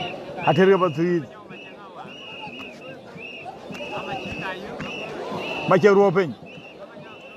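Men shout loudly close by.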